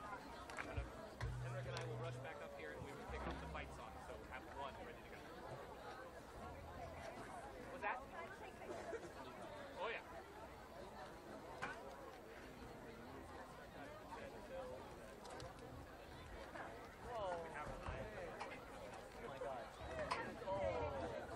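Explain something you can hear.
A small crowd of spectators chatters nearby in the open air.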